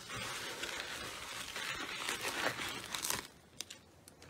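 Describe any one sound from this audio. Fingers squish and crackle through wet slime in a bowl.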